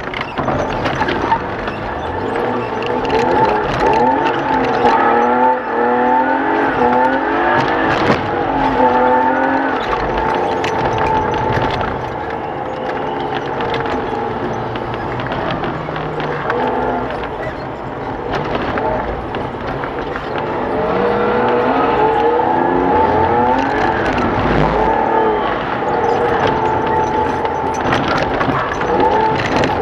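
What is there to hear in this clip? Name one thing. Tyres rumble over a wet, icy road.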